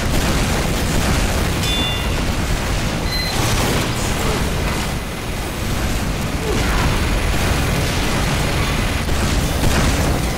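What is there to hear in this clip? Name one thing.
Video game gunfire rattles in a battle.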